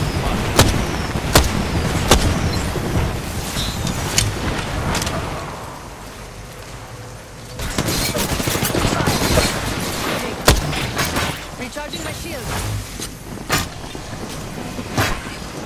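Gunshots crack in sharp single bursts.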